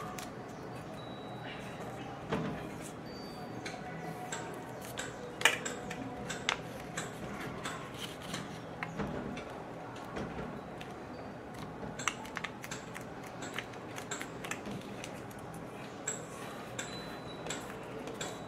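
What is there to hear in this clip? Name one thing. Fingers press and crease paper with soft scraping sounds.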